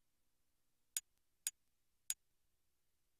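Short electronic menu clicks sound three times in quick succession.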